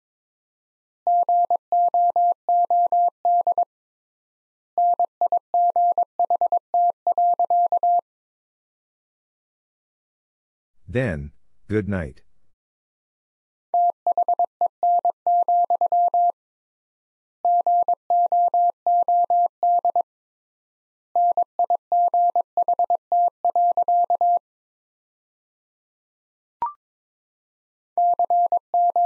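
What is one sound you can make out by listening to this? A telegraph key taps out quick Morse code beeps.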